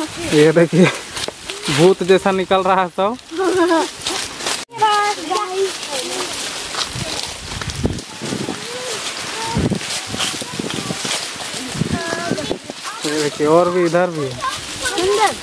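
Young boys talk excitedly close by.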